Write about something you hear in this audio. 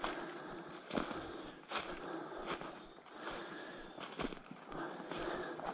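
Footsteps crunch and rustle through dry grass and leaves.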